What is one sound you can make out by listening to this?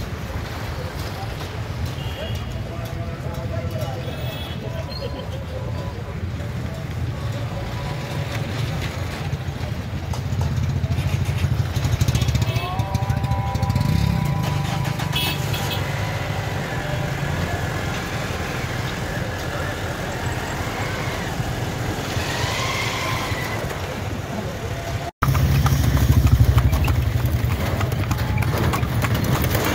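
Traffic rumbles along a busy street.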